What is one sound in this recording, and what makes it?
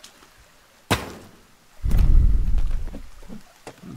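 A suitcase clicks and thumps open.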